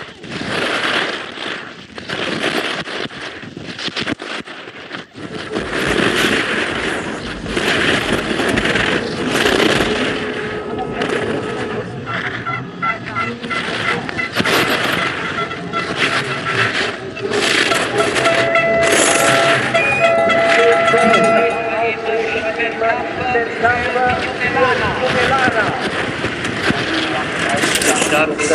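Racing skis carve and scrape across hard-packed snow.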